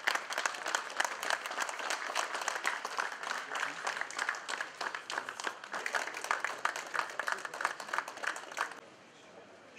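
A crowd applauds with steady clapping.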